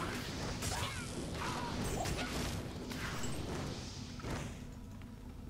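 Spells crackle and blast in a fast game fight.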